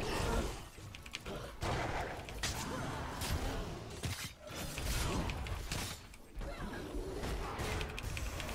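Game battle effects clash and burst with magic blasts.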